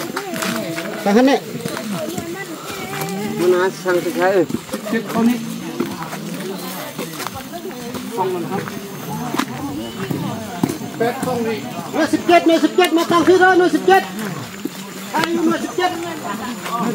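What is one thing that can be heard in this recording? Several men talk and call out to each other nearby, outdoors.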